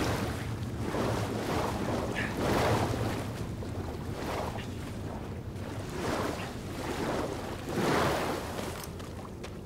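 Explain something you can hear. Water splashes in rhythmic swimming strokes.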